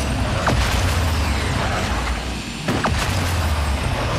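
A car crashes with a loud metallic bang.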